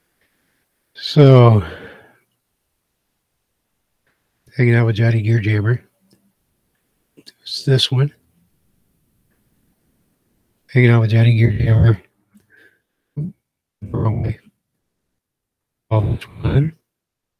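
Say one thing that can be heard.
A middle-aged man talks casually into a close microphone, in short bursts with pauses.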